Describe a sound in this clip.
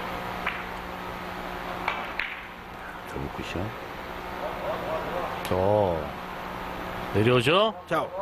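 Billiard balls click sharply against each other and the cushions.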